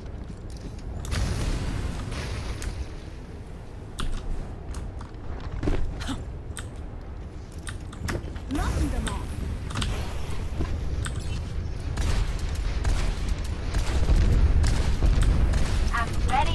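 A spinning gun fires rapid bursts with heavy rumbling blasts.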